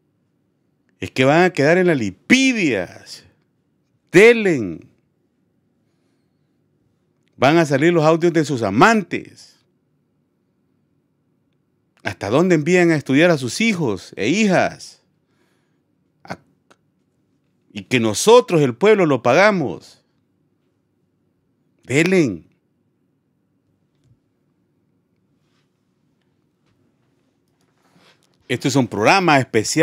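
A middle-aged man speaks with animation into a close microphone, pausing often.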